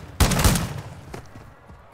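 A rifle fires a quick burst of loud shots that echo away.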